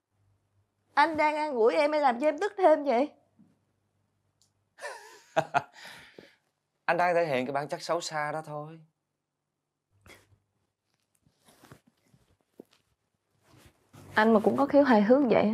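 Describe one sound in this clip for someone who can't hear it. A young woman speaks in an upset, pleading voice, close by.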